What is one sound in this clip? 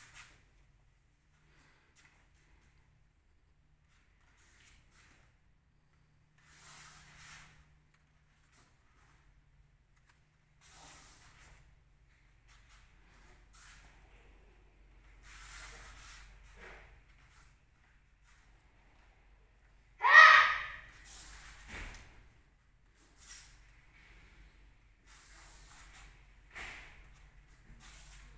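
Bare feet thump and shuffle on a soft mat.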